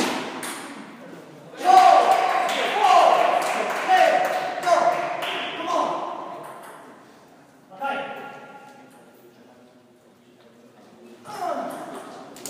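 A table tennis ball clicks off paddles and the table in a large echoing hall.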